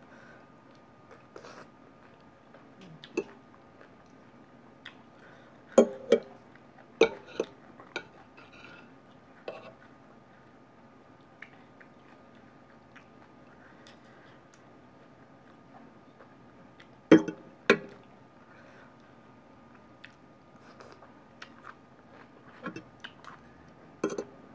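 A young woman chews and slurps food close by.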